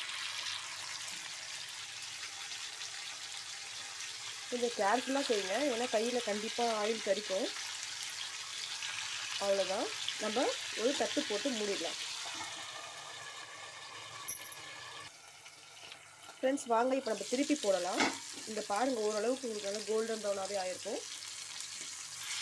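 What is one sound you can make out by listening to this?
Meat sizzles and crackles in hot oil.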